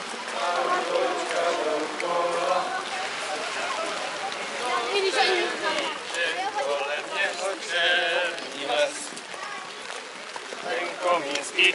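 Rain patters on umbrellas.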